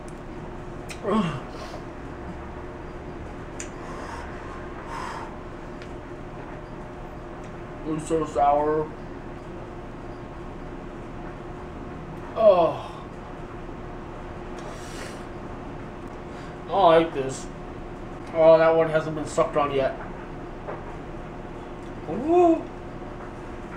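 A young man groans and exclaims in short bursts, close by.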